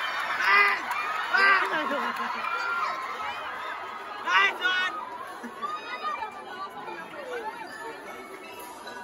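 A group of young performers shouts and cheers outdoors, some distance away.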